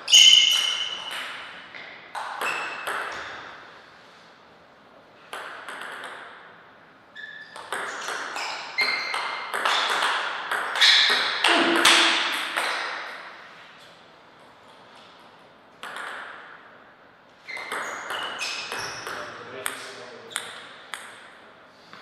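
A table tennis ball knocks quickly back and forth between paddles and a table.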